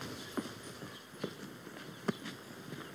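Boots tread on stone steps.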